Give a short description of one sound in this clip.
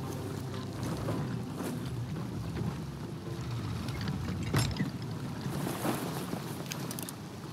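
Waves wash against a wooden boat's hull.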